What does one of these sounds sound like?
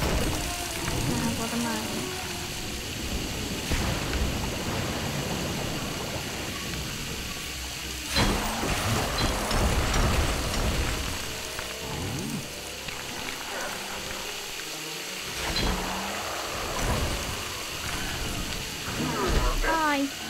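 Small studs jingle and clink as they scatter.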